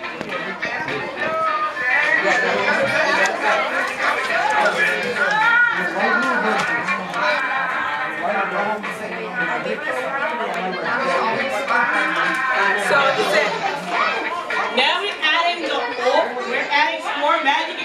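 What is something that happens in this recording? Children chatter and murmur in the background.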